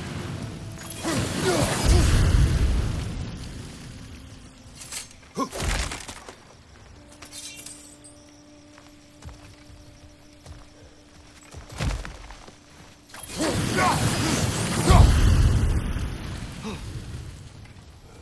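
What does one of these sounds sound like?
Fire whooshes and crackles as brambles burn.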